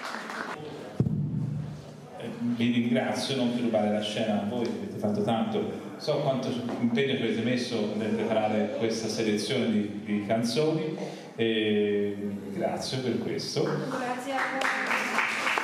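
A man speaks into a handheld microphone.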